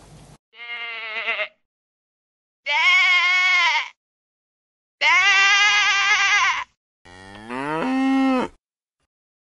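A sheep bleats loudly.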